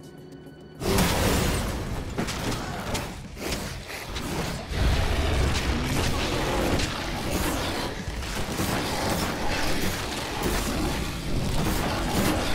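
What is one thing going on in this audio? Blows hit and slash in quick succession.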